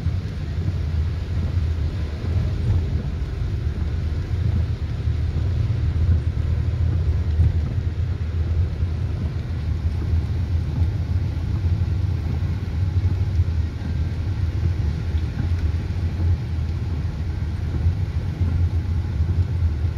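A windscreen wiper swishes across the glass.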